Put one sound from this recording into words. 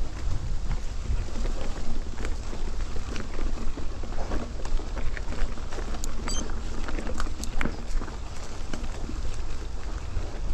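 Wind rumbles steadily past the rider.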